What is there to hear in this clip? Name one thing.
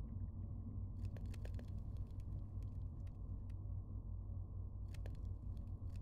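Quick game clicks sound as items are placed in a crafting grid.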